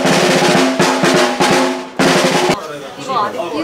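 A snare drum rattles with quick beats.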